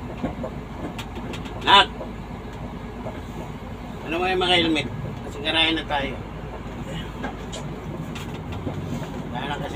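A vehicle drives along a paved road, heard from inside the cab.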